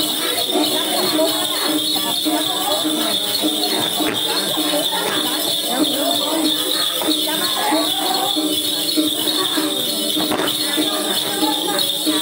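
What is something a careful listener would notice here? A young man sings close by.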